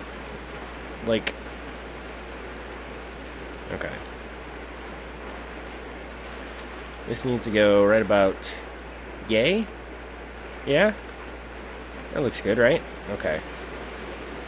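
A young man speaks in short bursts through a headset microphone.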